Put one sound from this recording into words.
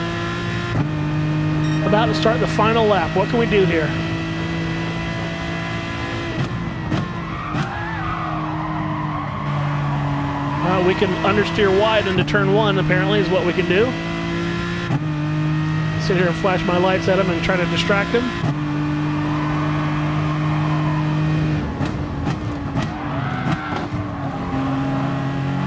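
A racing car engine drones loudly, its pitch shifting as it changes gear.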